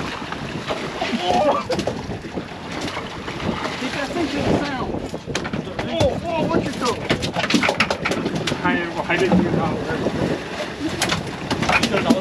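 Men talk and call out with excitement nearby.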